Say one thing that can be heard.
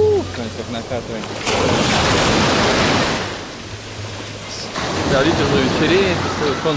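Waves wash and break loudly onto a pebble shore.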